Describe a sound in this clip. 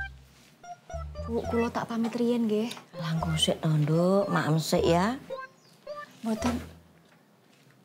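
A middle-aged woman speaks calmly and warmly up close.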